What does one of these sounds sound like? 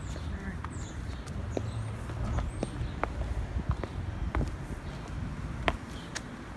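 Boots step steadily on stone outdoors.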